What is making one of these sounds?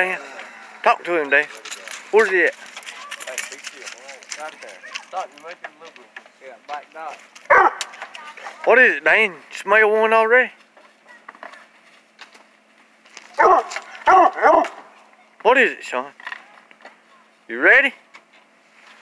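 A dog barks and yelps loudly close by.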